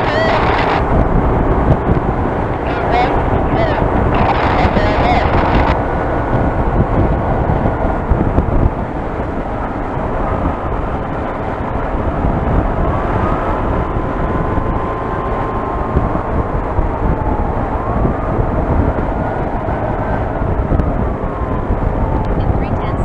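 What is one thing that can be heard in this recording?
Wind rushes loudly past a motorcycle.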